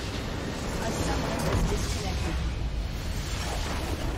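A huge crystal explodes with a deep rumbling boom.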